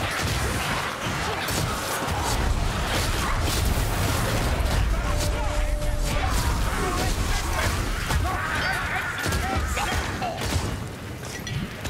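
Magic blasts crackle and roar in a fast fight.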